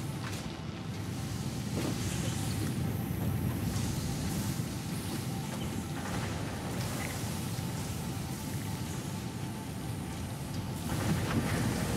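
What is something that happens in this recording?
A conveyor belt rumbles steadily.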